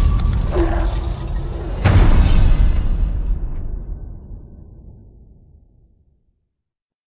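Glass shatters with a loud crash and slowly fades away.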